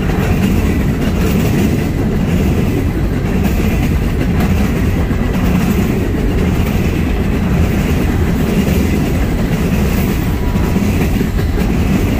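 Loaded freight cars rumble and clatter steadily along the rails close by.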